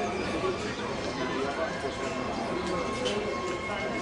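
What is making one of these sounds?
A crowd of spectators murmurs nearby.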